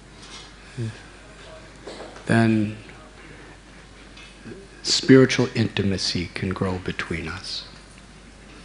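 A middle-aged man speaks calmly into a microphone, heard through a sound system.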